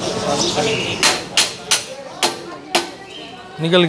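A metal wrench clanks against a motorcycle's rear wheel.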